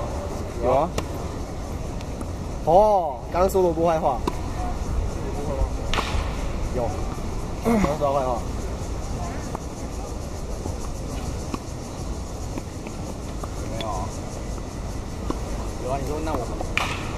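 A tennis ball is struck back and forth with rackets, with sharp pops.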